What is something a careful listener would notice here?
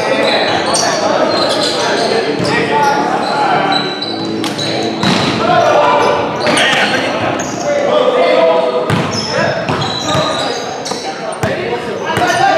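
Young men shout and call out to each other in an echoing hall.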